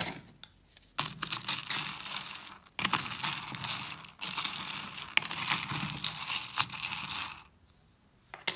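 Hard wax beads rattle and clatter as a spatula stirs them.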